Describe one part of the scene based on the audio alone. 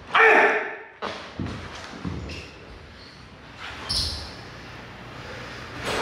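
Bare feet shuffle and thump on a wooden floor.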